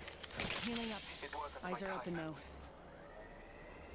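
A game character unwraps and applies a medical kit with rustling and clicking sounds.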